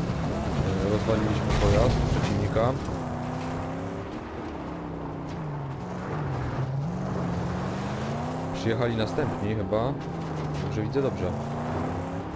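Tyres crunch over loose sand.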